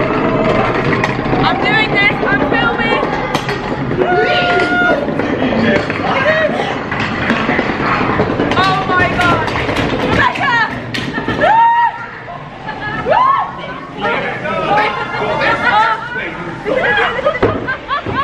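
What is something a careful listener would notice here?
A young woman shrieks and laughs excitedly up close.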